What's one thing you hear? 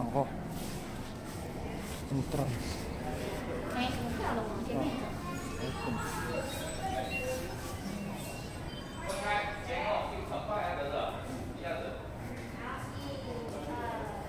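People chatter quietly in an echoing indoor hall.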